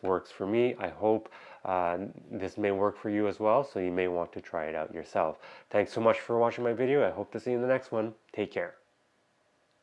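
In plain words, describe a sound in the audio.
A man talks calmly and clearly into a close microphone.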